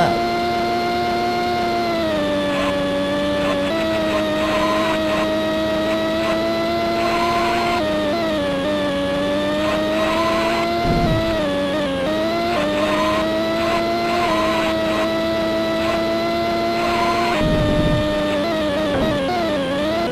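A synthesized racing car engine drones loudly, its pitch dropping and rising as it shifts gears.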